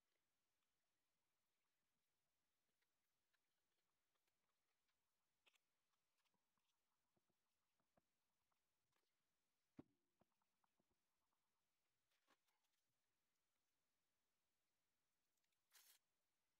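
Paper rustles and crinkles as a sheet is pressed down by hand.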